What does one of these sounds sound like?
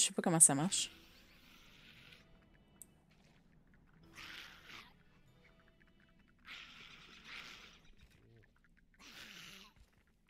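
Blows land on spiders in a fight.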